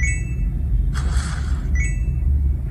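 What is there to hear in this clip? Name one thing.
A mobile game plays a quick whooshing sound.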